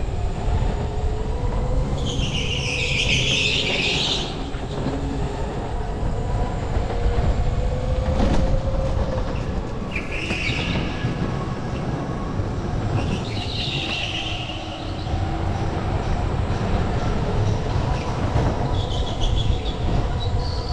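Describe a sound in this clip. A go-kart engine drones and buzzes steadily up close.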